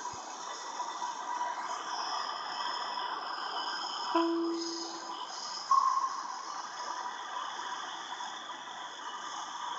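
Jet engines whine and roar steadily as an airliner taxis.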